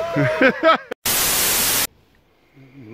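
A loud burst of static hiss cuts in.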